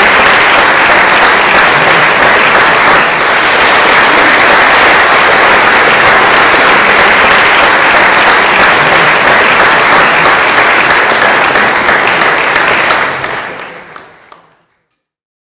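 An audience applauds loudly in a large echoing hall, then the applause fades away.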